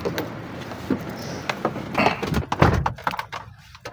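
A car door opens and shuts with a thud.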